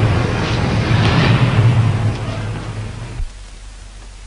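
A car engine rumbles loudly, then cuts off abruptly.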